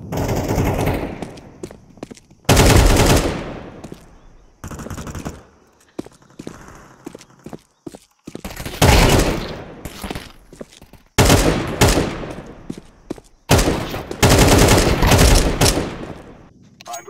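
A rifle fires in loud, sharp bursts.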